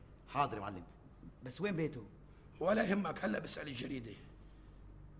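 A middle-aged man speaks firmly nearby.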